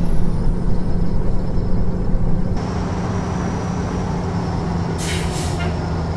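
Tyres roll over a road with a steady rumble.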